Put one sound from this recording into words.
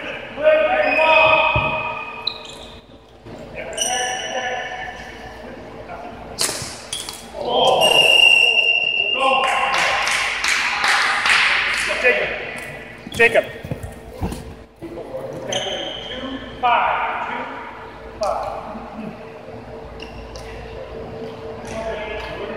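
Young men shout and call out in a large echoing hall.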